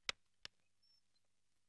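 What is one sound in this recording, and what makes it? A wooden door clicks open.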